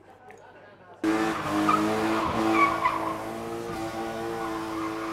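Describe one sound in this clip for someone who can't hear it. A car engine revs hard as the car drifts.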